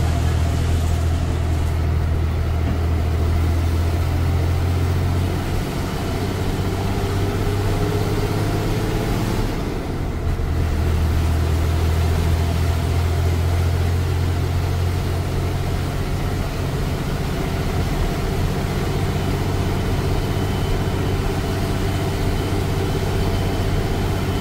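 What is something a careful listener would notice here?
A bus engine drones steadily from close by.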